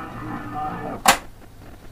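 A tape recorder's lever clicks into place.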